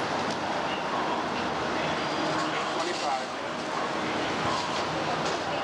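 A crowd of men and women chatter all around.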